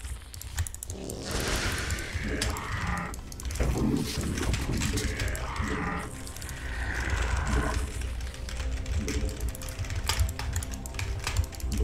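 Game sound effects click and crackle.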